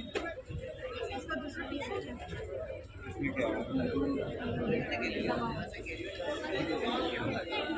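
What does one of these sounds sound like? Women and men chatter nearby in a busy crowd.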